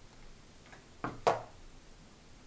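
A plastic glue gun is set down on a table.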